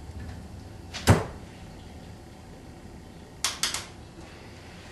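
Objects knock and clatter against a hard surface.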